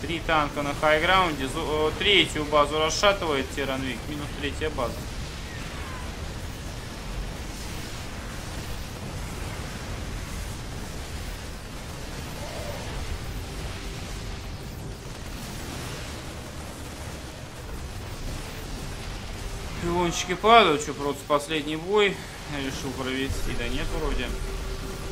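Sci-fi weapons fire and explode in a battle.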